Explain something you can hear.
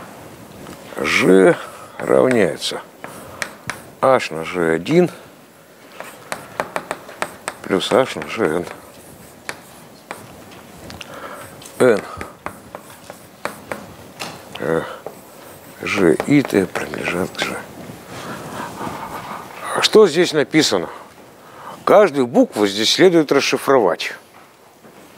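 An elderly man lectures in a calm voice in an echoing hall.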